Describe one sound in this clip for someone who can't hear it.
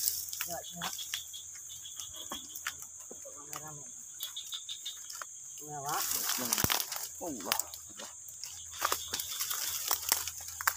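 Leaves and dry stalks rustle and crackle close by.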